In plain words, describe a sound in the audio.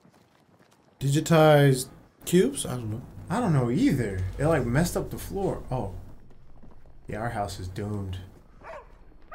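A young man talks and reacts close to a microphone.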